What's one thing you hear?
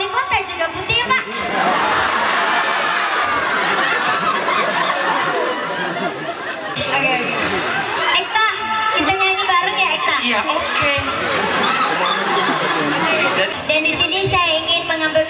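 A young woman speaks with animation into a microphone over loudspeakers.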